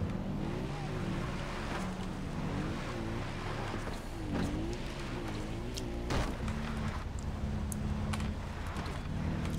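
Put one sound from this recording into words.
A quad bike engine hums and revs steadily.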